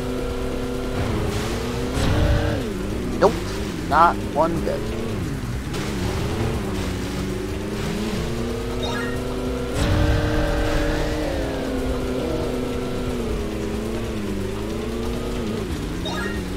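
Water splashes and sprays as the jet ski hits waves.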